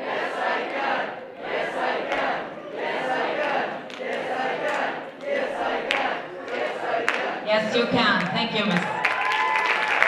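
A man speaks into a microphone with animation in a large echoing hall.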